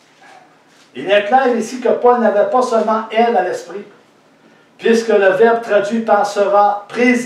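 An older man speaks with animation into a nearby microphone.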